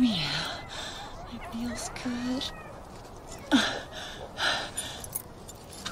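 A woman gasps and laughs excitedly.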